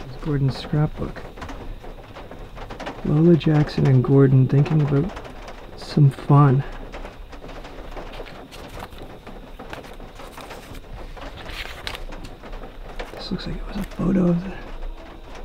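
Paper rustles and crinkles as pages are turned and handled.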